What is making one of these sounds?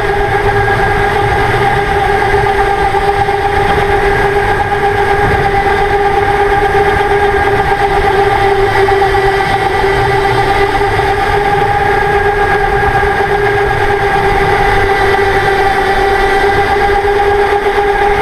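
A go-kart motor whines steadily up close.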